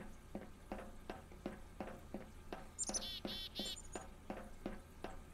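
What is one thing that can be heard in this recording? Footsteps clang steadily on metal stairs.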